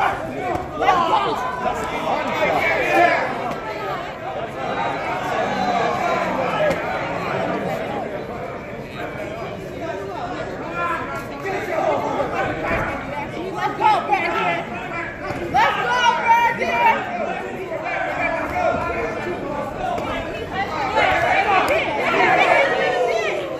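Boxers' punches thud against bodies and gloves.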